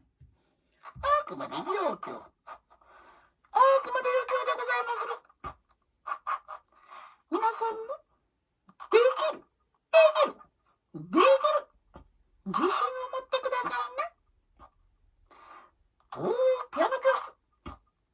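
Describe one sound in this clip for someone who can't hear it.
A small hand whistle chirps and warbles in short, sliding bursts.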